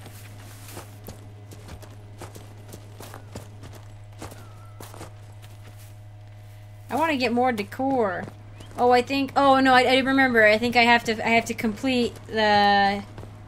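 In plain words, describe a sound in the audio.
Footsteps tread steadily on dirt and stone.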